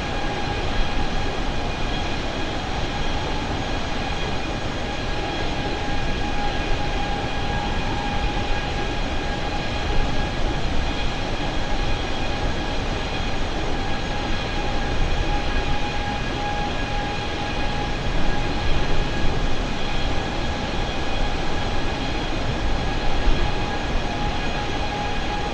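Jet engines roar steadily with a constant high whine.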